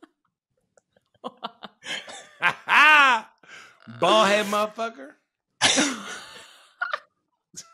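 A young man laughs loudly over an online call.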